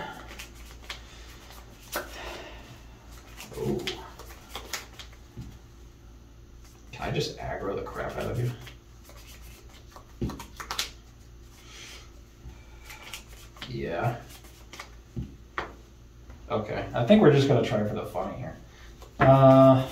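Playing cards riffle and flick as hands shuffle them.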